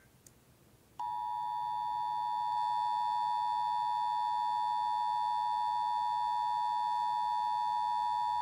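A steady, shrill electronic alert tone plays from a small speaker.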